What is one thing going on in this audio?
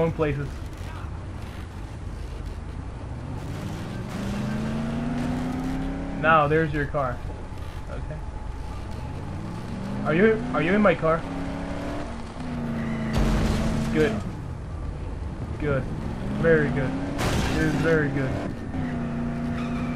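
A car engine hums and revs as it drives along.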